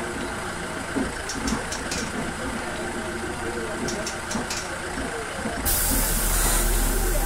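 A bus engine idles with a steady low rumble.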